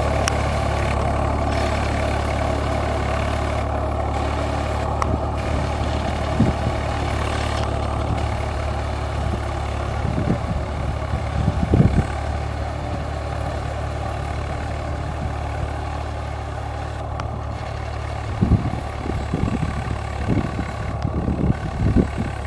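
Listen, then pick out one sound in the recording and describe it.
Plough discs churn and crunch through soil.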